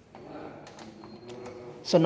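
A knob clicks as it is turned.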